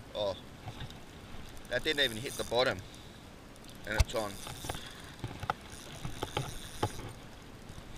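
A fishing reel ticks as its handle is turned.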